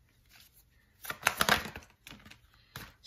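Playing cards riffle and flutter as a deck is shuffled.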